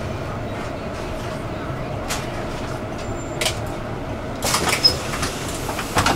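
A bus engine rumbles steadily at idle.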